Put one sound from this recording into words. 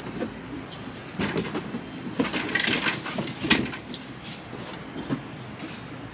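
A shopping cart rolls and rattles.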